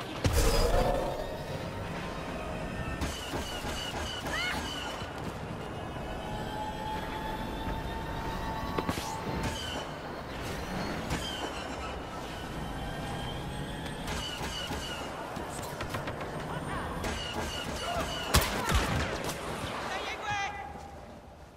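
A speeder bike's engine roars steadily as it races along.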